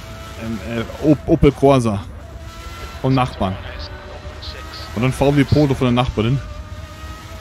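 A man speaks casually into a nearby microphone in short bursts.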